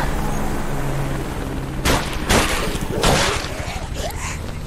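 Sharp blows and thuds ring out in a brief scuffle.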